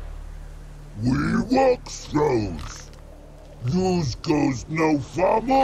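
A creature speaks in a deep, rough, growling voice.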